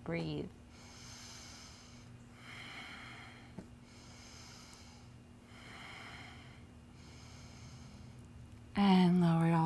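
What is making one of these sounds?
A young woman breathes in and out slowly and deeply.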